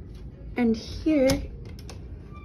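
A lever door handle clicks.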